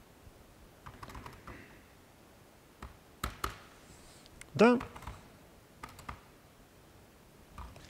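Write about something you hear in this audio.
Keys clatter on a computer keyboard in short bursts.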